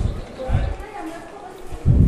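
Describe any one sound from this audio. Men and women talk at a distance.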